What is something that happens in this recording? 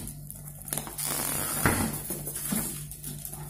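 A plastic wrapper crinkles as it is pulled off a box.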